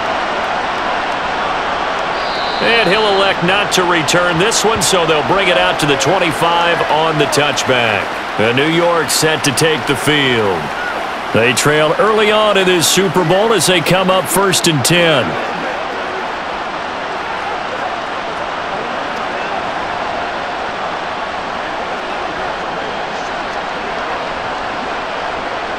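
A large crowd murmurs and cheers steadily in a big stadium.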